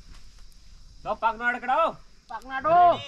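A man speaks nearby in a lively, high voice.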